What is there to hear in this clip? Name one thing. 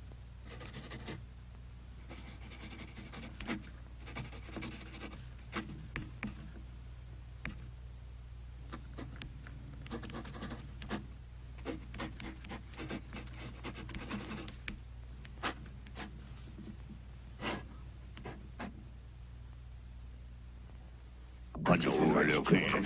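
A middle-aged woman talks with animation, close by.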